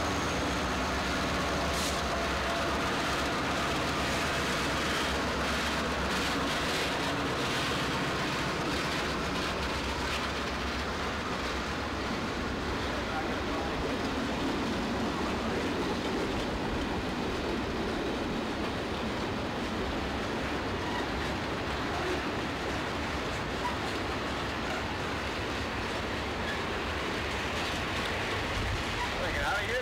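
A long freight train's wheels clatter and rumble steadily over the rails.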